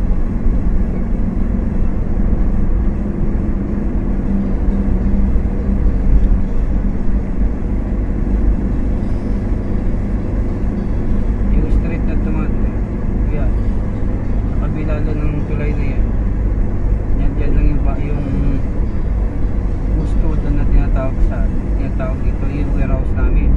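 A car engine hums and tyres roar steadily on the road from inside the car.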